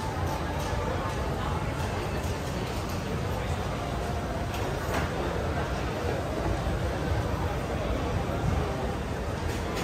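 Food sizzles and clatters in a wok.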